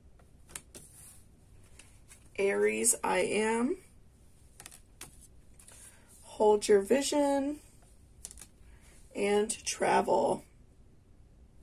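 Playing cards rustle and tap softly as a hand handles them.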